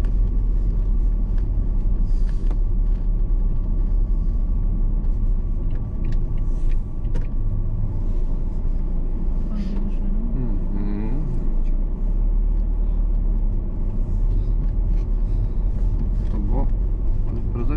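A car engine hums steadily from inside the car as it drives slowly.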